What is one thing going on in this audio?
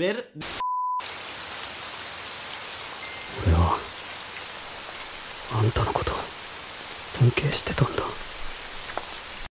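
Rain falls steadily with a soft hiss.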